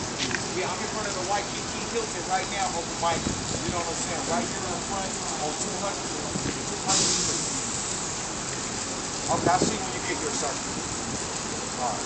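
A young man talks casually on a phone nearby.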